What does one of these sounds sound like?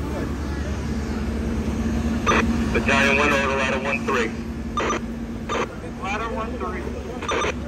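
A fire engine idles with a steady low rumble.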